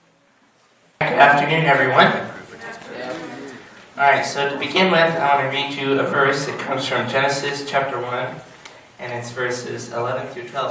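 A young man speaks steadily into a microphone, heard through a loudspeaker in an echoing room.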